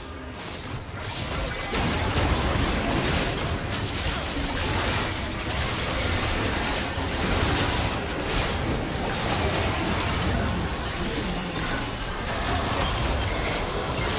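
Game spell effects and combat clashes crackle and boom in a busy fight.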